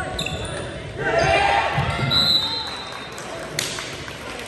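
A crowd of young people cheers and shouts in an echoing gym.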